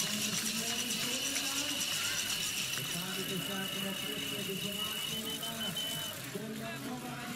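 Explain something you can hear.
A crowd cheers and claps outdoors.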